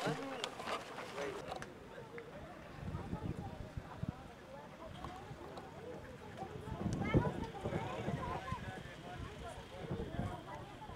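A crowd of people murmurs and chatters.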